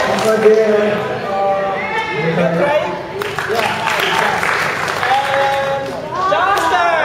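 An older man speaks into a microphone over a loudspeaker, in a large echoing hall.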